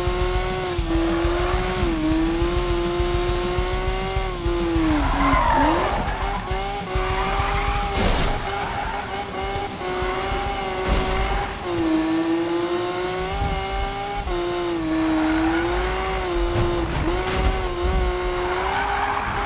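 A car engine roars steadily, its pitch dipping and rising as it revs.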